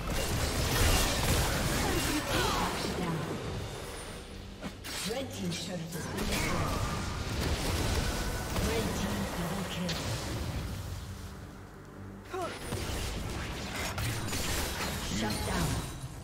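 Spells and weapon blows burst and clash in quick succession.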